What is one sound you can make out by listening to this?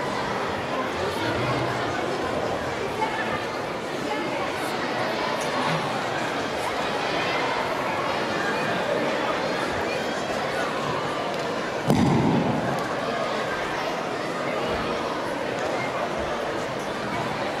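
An audience cheers and chatters nearby.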